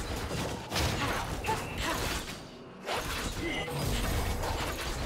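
Game spells and attacks crackle and thud in a fight.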